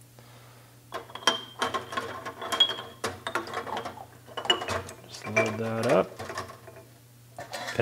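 Metal parts clink against a metal basket.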